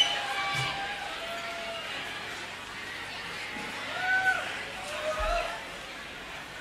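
Members of a crowd whistle shrilly.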